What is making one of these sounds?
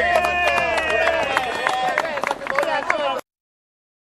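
A crowd cheers and claps outdoors.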